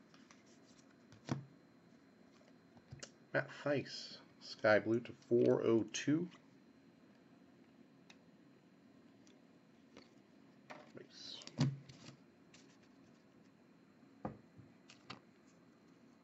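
Trading cards click softly as they are flipped one by one.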